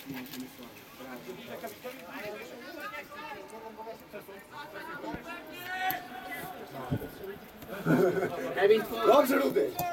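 Young football players shout to each other across an open outdoor pitch.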